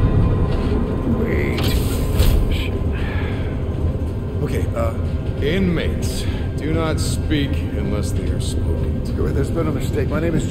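A young man speaks calmly in a low voice.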